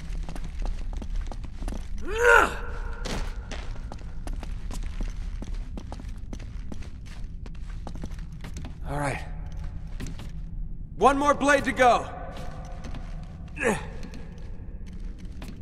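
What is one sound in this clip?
Footsteps and hands knock and scrape on stone and metal.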